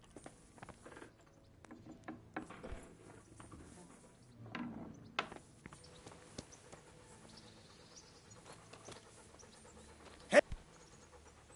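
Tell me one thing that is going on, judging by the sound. Footsteps tread on wooden floor and gravel.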